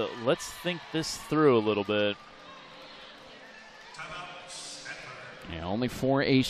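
A crowd cheers in a large echoing hall.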